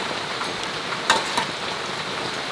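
A metal ladle clinks against a plastic basket.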